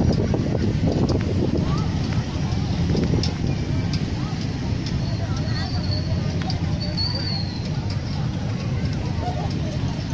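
Children and adults chatter in the distance.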